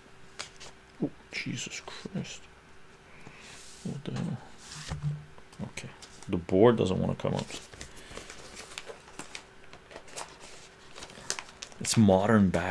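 An older man speaks calmly and close by, in short bursts.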